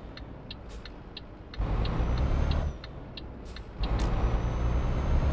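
A truck engine rumbles steadily, roaring louder in two bursts.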